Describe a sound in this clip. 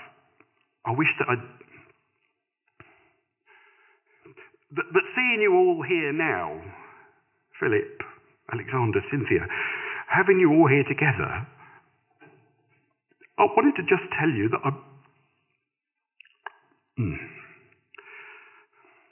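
A middle-aged man reads aloud slowly and expressively into a microphone, with pauses between phrases.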